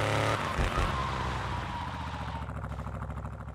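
Car tyres screech as a car brakes to a stop.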